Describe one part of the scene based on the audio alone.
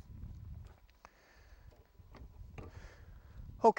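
A rifle knocks and clicks as it is set down on a table.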